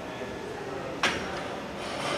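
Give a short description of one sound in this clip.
Metal weight plates clank on a barbell.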